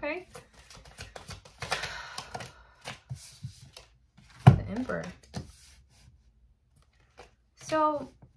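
Cards shuffle and rustle in a woman's hands.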